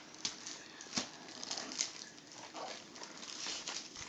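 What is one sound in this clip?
Wrapping paper rustles and tears.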